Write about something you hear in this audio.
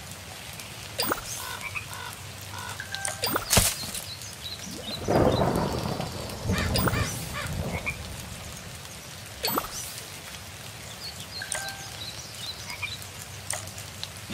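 Short bright chimes ring out now and then.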